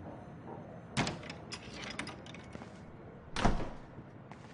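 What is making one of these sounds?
A door clicks and thuds.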